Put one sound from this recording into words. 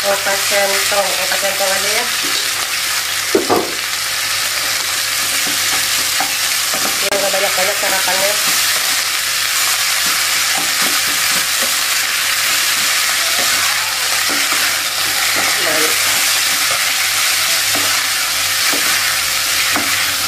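Food sizzles steadily in a hot pan.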